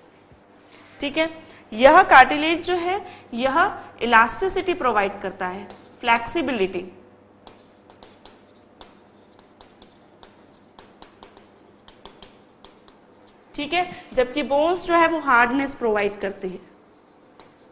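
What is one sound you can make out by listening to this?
A woman speaks clearly into a microphone, explaining.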